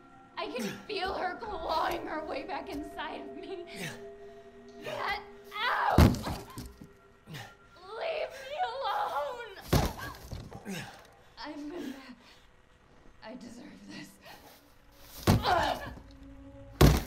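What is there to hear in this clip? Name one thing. A young woman speaks in a strained, frantic voice close by.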